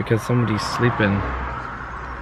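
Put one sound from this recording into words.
A young man speaks close by in a hushed voice.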